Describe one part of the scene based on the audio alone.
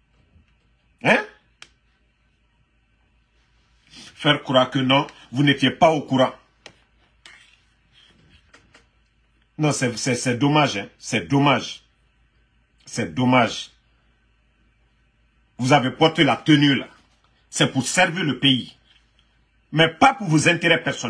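A man speaks calmly and earnestly in bursts, close to a microphone.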